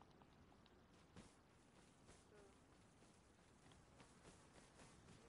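Footsteps rustle through grass at a steady walking pace.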